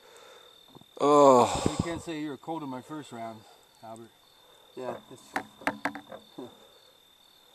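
A man speaks close up.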